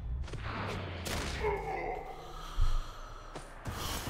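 Bodies thud together in a hard tackle.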